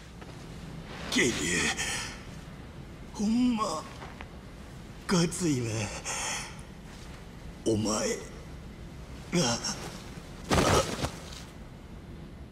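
A man speaks weakly and haltingly, close by.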